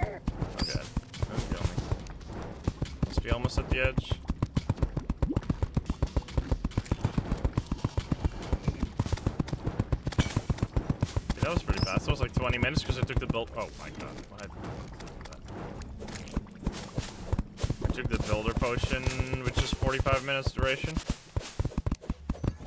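Rapid video game gunshots thump steadily.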